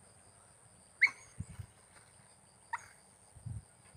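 A dog barks twice at a distance outdoors.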